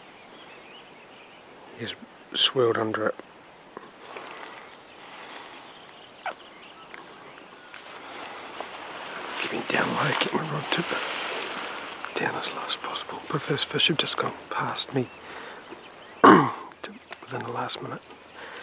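Wind rustles through the grass outdoors.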